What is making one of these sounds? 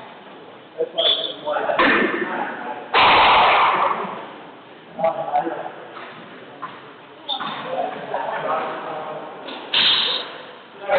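Sneakers squeak sharply on a wooden floor.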